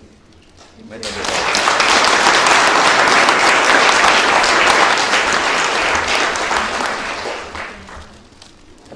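A crowd applauds loudly in an echoing hall.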